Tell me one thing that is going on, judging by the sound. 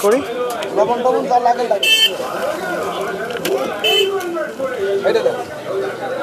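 Men and women talk in a bustling outdoor crowd.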